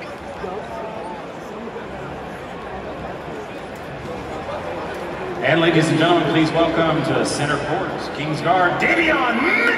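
A large crowd murmurs and chatters in a big echoing arena.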